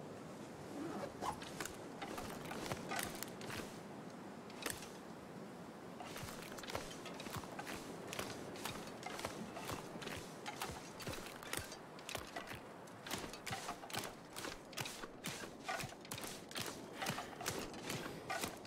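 Footsteps crunch on ice and snow.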